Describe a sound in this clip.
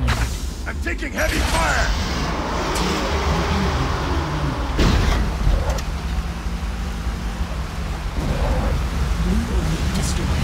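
A vehicle engine hums and growls steadily.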